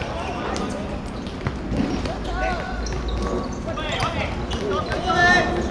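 Players shout to each other across an open-air court.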